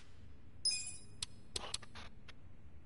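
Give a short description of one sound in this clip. A bright menu chime rings and clicks.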